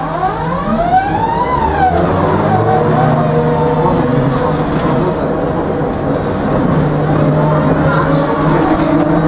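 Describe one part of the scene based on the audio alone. A tram rumbles and rattles steadily along the street.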